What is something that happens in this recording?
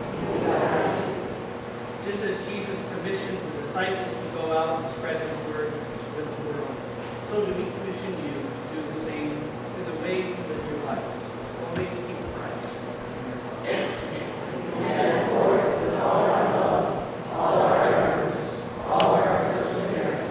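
A man reads aloud calmly in a large echoing hall.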